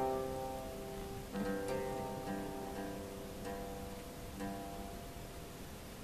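A man plucks notes on a lute, ringing softly.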